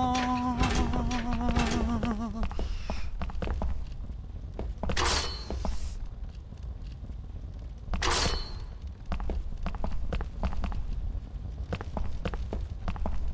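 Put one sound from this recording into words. Footsteps patter on stone as a character runs.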